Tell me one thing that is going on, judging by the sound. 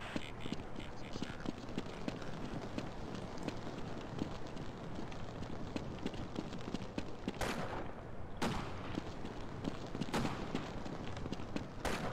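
Footsteps clatter quickly and steadily on a hard floor.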